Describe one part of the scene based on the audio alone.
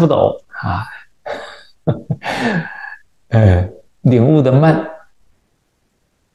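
An elderly man laughs heartily close to a microphone.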